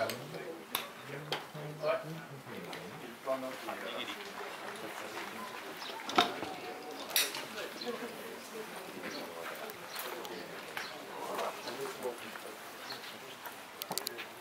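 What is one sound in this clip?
A man talks quietly nearby.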